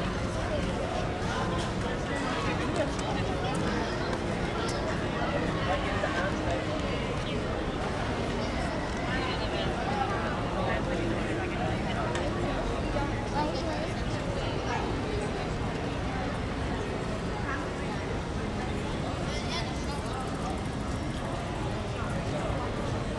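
A crowd of people chatters on a busy pedestrian street outdoors.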